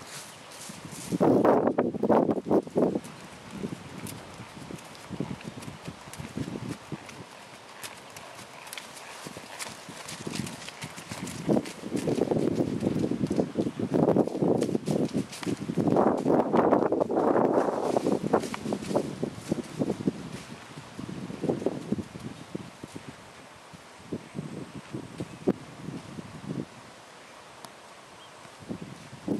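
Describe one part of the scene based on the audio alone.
A horse's hooves thud on soft ground at a trot.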